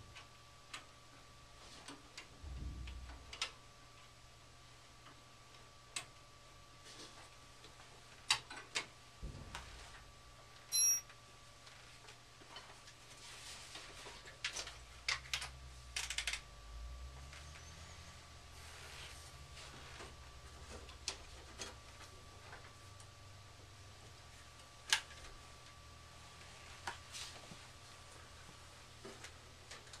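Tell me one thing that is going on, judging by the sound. Wires and metal parts click and rattle.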